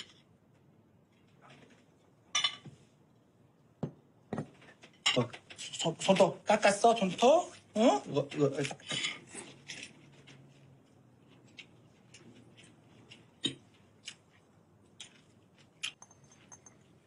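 Cutlery clinks and scrapes on a plate.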